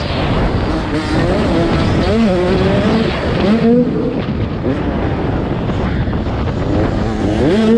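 A motorcycle engine revs hard up close, rising and falling in pitch as gears shift.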